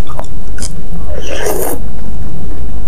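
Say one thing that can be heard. A woman slurps noodles loudly, close to a microphone.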